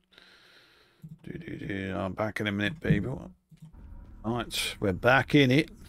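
An elderly man talks with animation close to a microphone.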